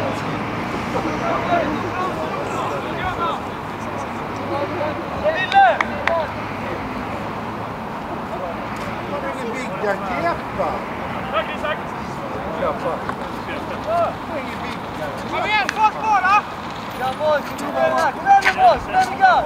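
Football players shout to each other far off across an open field.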